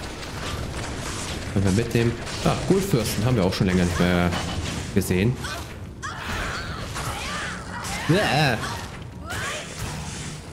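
Fire spells whoosh and crackle.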